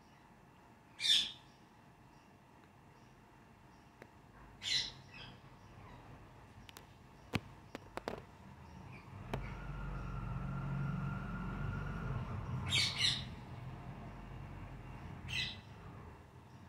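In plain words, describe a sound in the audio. Parakeets screech in short, shrill bursts.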